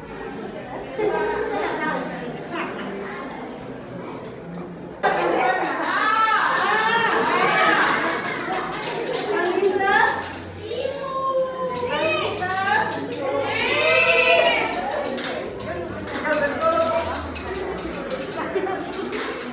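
A young woman speaks with animation through a microphone in an echoing room.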